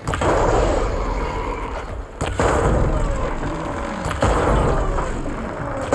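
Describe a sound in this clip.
Energy blasts crackle and fizz.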